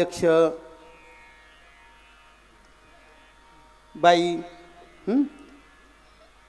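A middle-aged man sings out short loud bursts through a microphone, echoing in a large hall.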